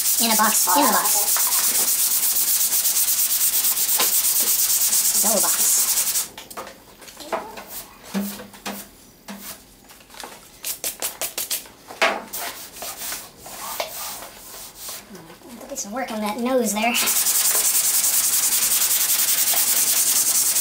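An abrasive pad scrubs hard across a metal surface with a steady, rasping hiss.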